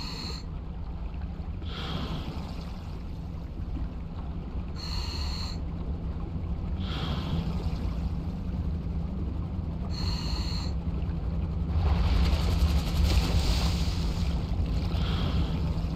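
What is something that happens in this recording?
Air bubbles gurgle out of a diver's breathing gear in regular bursts every couple of seconds.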